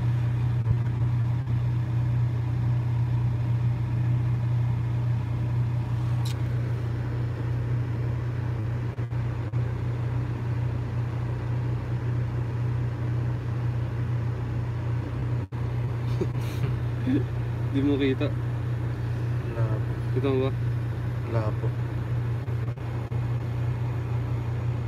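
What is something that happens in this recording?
A vehicle engine hums steadily at idle.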